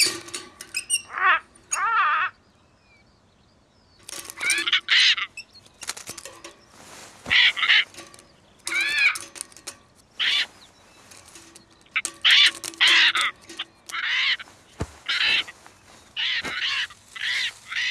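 A small bird chirps in short, repeated calls.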